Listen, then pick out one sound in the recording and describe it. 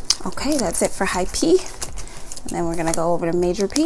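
A wallet snaps shut with a soft click.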